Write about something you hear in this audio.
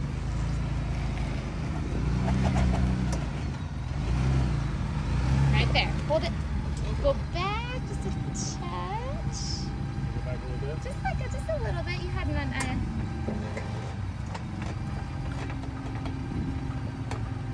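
An engine rumbles low as a vehicle crawls slowly over rock.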